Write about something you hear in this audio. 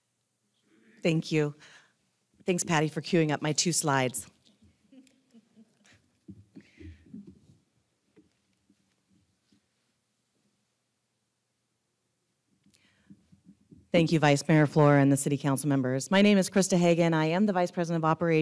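A woman speaks into a microphone in a large room.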